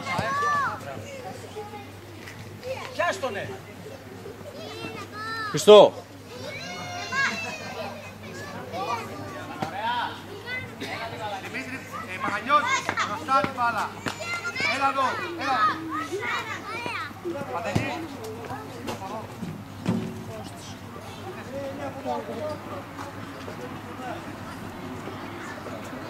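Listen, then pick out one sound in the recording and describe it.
Children shout and call out excitedly outdoors.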